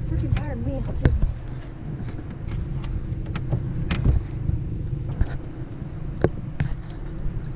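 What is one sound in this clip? Objects knock sharply on a boat deck.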